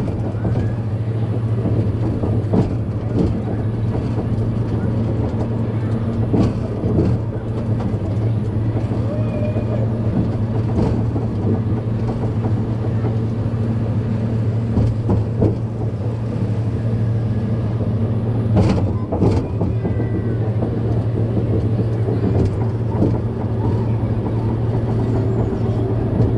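A ride car hums and rumbles steadily along its track.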